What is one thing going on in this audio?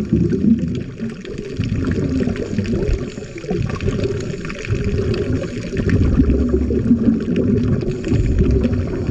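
Bubbles from a diver's breathing gurgle and rumble loudly underwater.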